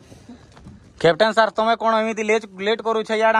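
A man speaks loudly outdoors.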